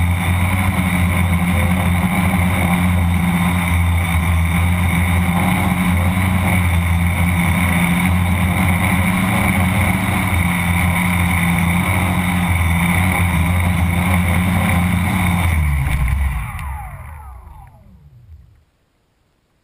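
A small drone's propellers buzz steadily close by, then wind down and stop.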